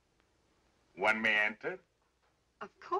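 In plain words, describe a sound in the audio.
A woman answers calmly.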